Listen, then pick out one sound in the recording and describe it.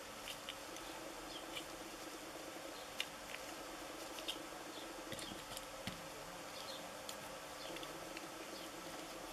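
Plastic parts click and clack.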